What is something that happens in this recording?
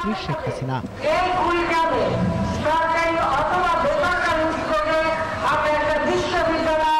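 An elderly woman speaks forcefully into a microphone, heard through loudspeakers.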